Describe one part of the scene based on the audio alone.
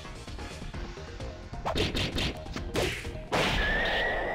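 Sharp hits land in quick succession.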